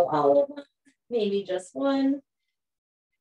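A woman speaks calmly, giving instructions over an online call.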